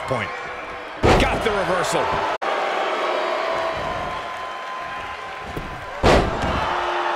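A heavy body slams onto a wrestling mat with a loud thud.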